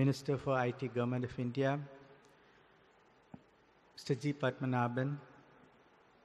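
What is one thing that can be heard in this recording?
An elderly man speaks slowly and calmly into a microphone, heard through loudspeakers in a large hall.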